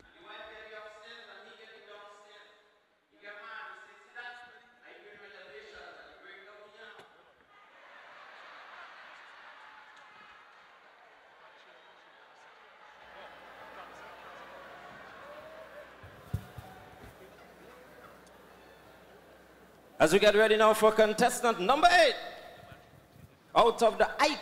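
A young man speaks with animation into a microphone, heard through loudspeakers in a large hall.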